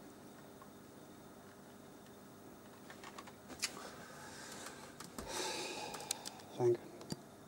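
Small plastic clicks and rustles come from handling a small object.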